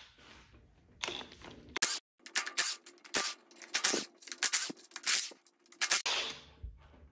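An impact wrench whirs in short bursts.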